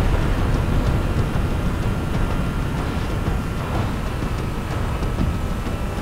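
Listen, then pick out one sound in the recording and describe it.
A video game military jeep's engine roars as it drives over rough dirt.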